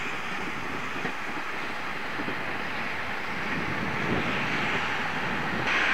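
A train rumbles away along the tracks.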